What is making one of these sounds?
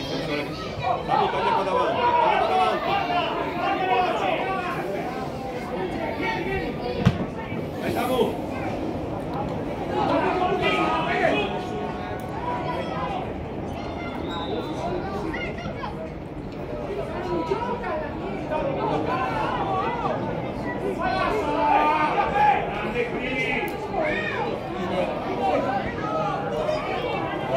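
Spectators close by chatter and call out.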